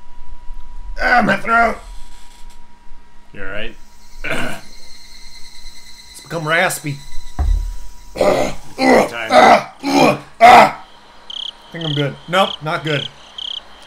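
Two young men talk with animation, close to a microphone.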